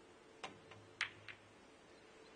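Snooker balls knock against each other.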